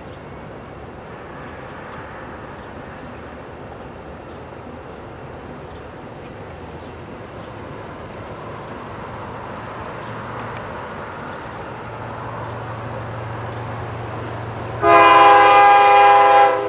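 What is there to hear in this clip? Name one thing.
A diesel locomotive rumbles steadily as it approaches, growing louder.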